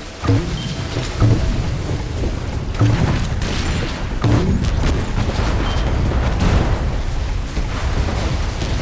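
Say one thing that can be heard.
Water splashes and sprays behind a game's speeding boat.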